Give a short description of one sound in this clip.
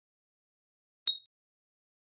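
A menu chime sounds once as a skill is confirmed.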